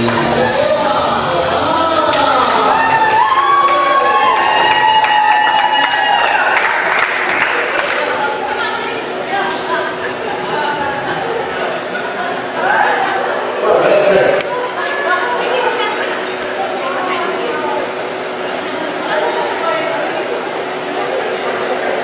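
A crowd chatters and cheers in an echoing room.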